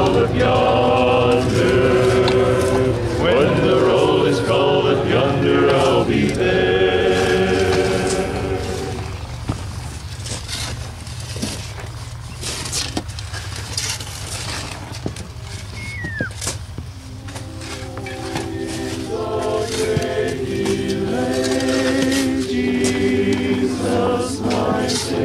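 A group of men and women sing a hymn together outdoors.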